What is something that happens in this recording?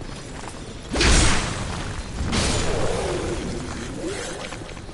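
A heavy club slams into a creature with a loud thud.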